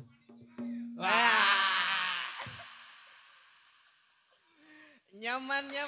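Two men sing together through microphones.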